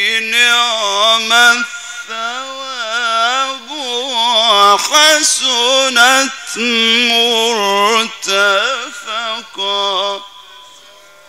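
A man chants a melodic recitation through loudspeakers in a large echoing hall.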